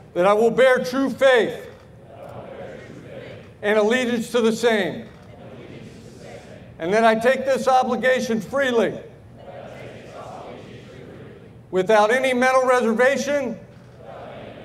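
A woman speaks firmly through a loudspeaker, reciting in short phrases.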